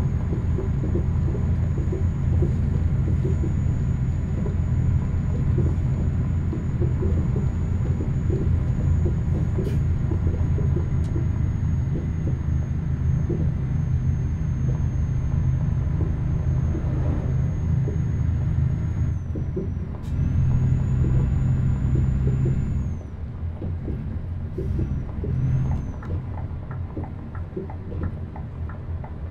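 Tyres crunch over snow.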